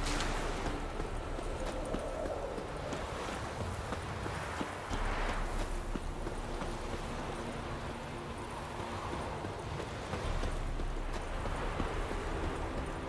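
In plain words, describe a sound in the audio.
Footsteps run quickly over a gravel path.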